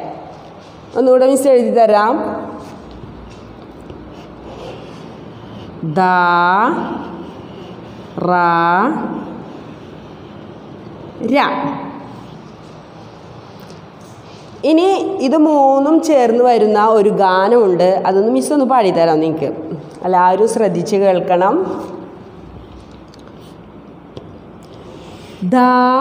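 A woman speaks loudly and clearly in short bursts, as if teaching, close by.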